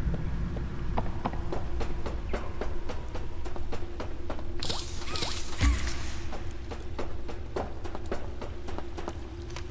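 Footsteps clank on a metal grating walkway.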